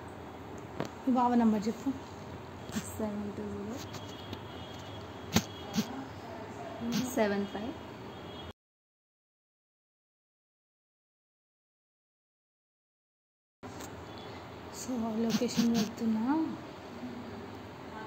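A young woman speaks close by, with feeling.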